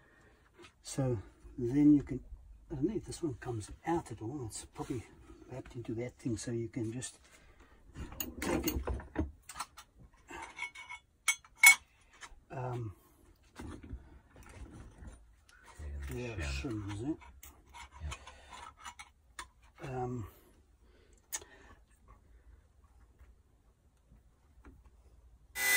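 Metal parts clink and clack as they are handled.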